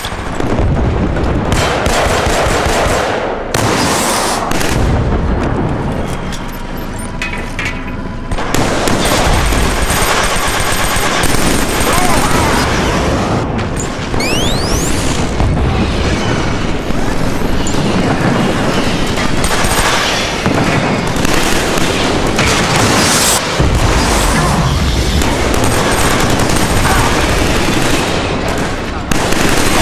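A machine gun fires in rapid, loud bursts.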